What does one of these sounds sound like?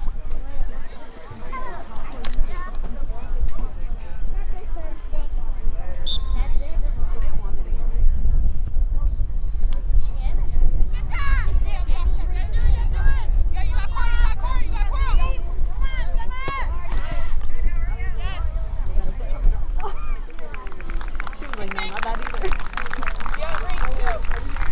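Young women shout to each other across an open field outdoors.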